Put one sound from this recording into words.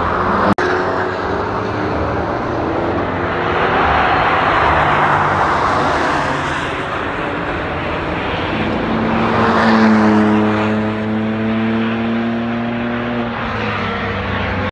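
Car engines roar loudly as cars speed past outdoors.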